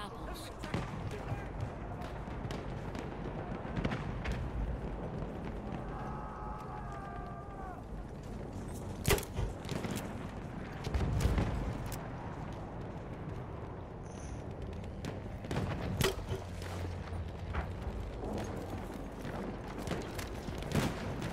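Explosions boom and rumble in the distance.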